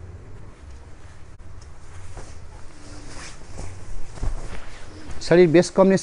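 Silk cloth rustles as it is unfolded.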